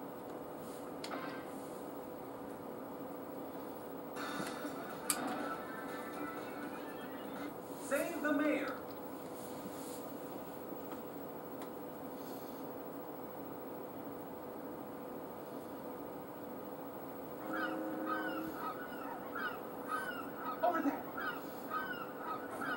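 Video game music and sound effects play through a small television speaker.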